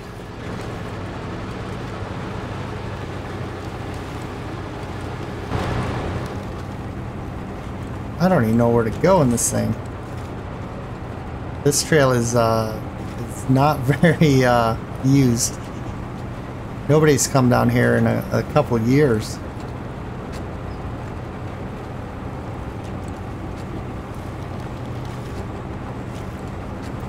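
A truck engine rumbles steadily at low revs.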